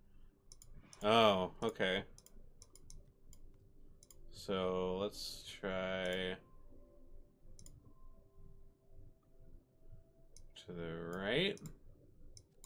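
A man speaks expressively into a close microphone, in short bursts.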